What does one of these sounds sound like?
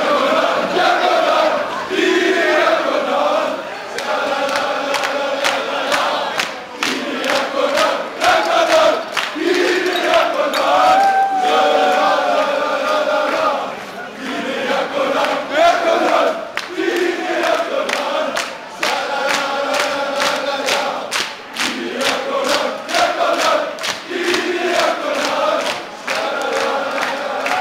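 Many people clap their hands in rhythm.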